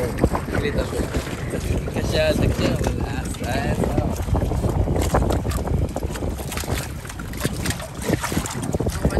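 A sail flaps and rattles in the wind.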